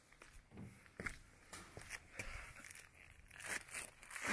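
Steel wire mesh scrapes and clinks.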